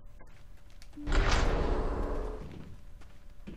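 A heavy door slides open with a loud whoosh.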